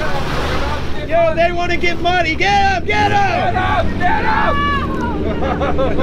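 Young men shout and whoop excitedly close by.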